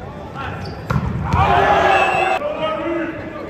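Players on a bench cheer and shout in a large echoing gym.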